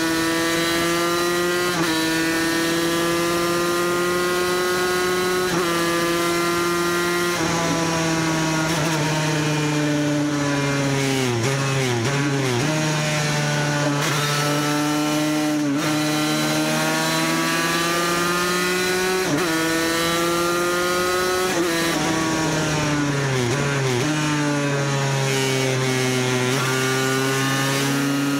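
A motorcycle engine screams at high revs, rising through the gears and dropping as it shifts down.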